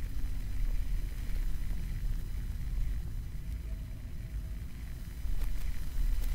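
Wings flap and rustle close by.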